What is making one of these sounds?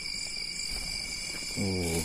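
A bird flaps its wings as it takes off from a hand.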